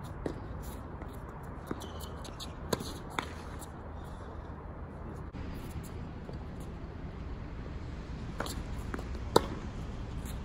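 Tennis balls pop off rackets in a rally outdoors.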